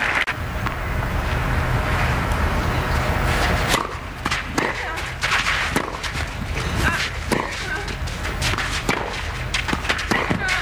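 Tennis balls are struck hard with rackets, back and forth.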